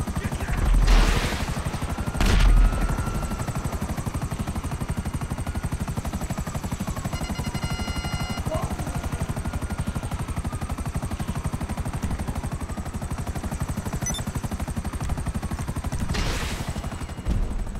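A helicopter's rotor blades thump rapidly and steadily.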